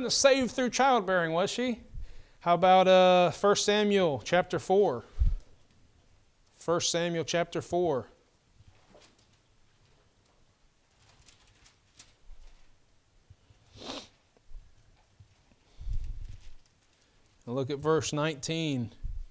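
A man speaks calmly and clearly into a microphone, with pauses.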